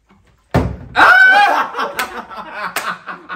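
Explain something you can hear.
A young woman screams with delight.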